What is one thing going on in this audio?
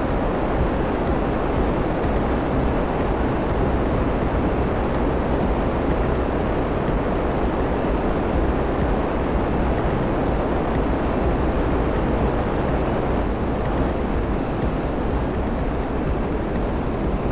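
A jet aircraft's engines roar steadily in flight.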